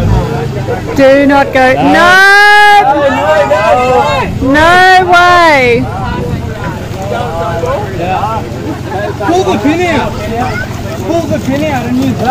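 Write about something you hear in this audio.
Several men shout and cheer loudly outdoors.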